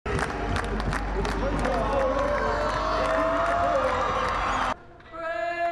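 Players clap their hands in quick bursts.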